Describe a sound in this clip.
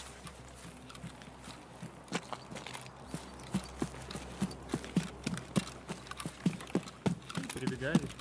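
Footsteps crunch steadily through grass.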